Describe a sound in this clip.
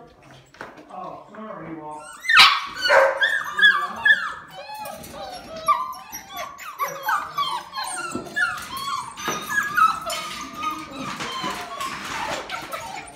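Puppies yip and whine in high, quick cries.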